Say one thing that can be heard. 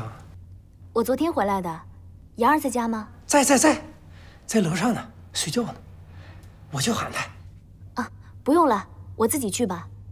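A young woman answers brightly nearby.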